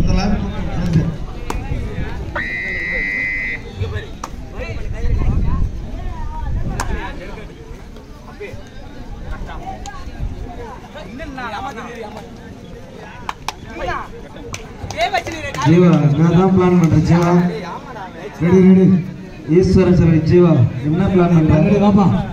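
A crowd of people talks and calls out nearby, outdoors.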